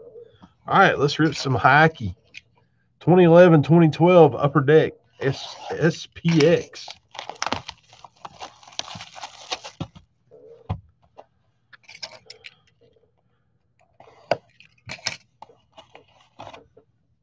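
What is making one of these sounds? A cardboard box bumps and scrapes softly as hands turn it over.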